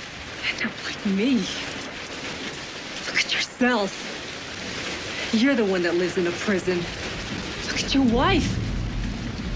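A woman speaks tensely and emotionally, close by.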